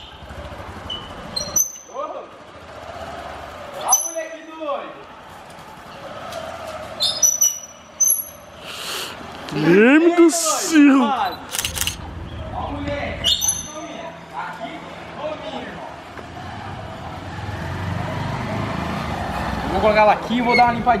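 A motorcycle engine idles and revs.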